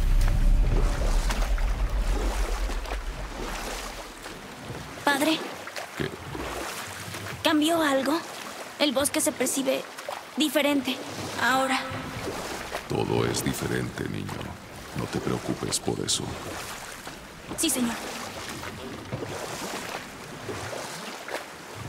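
Water rushes and splashes around a small boat.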